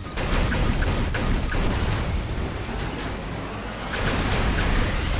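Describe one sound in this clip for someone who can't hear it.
A robot's energy gun fires rapid zapping shots.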